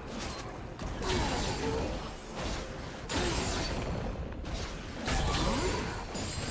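Magic spells crackle and burst in a fast game battle.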